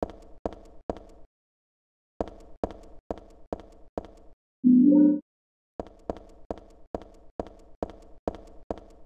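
Footsteps echo on a hard floor at an even walking pace.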